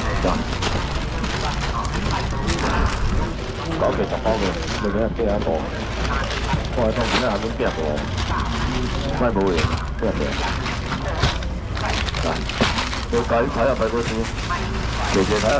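Plastic packets rustle and slap down onto plastic baskets.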